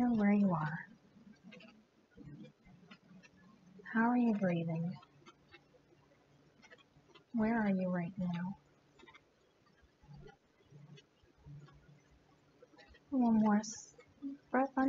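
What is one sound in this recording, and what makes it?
A young woman speaks calmly and softly in short phrases, close to the microphone, with pauses between them.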